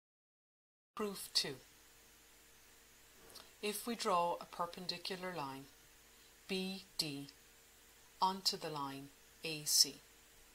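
A woman speaks calmly into a close microphone, explaining.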